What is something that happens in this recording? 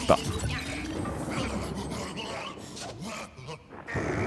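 A ghost groans and roars.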